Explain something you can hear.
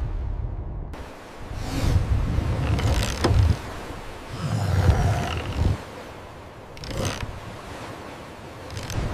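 A sailing winch clicks as it is cranked with a rope around it.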